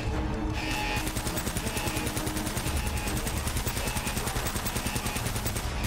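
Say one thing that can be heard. A submachine gun fires rapidly and steadily.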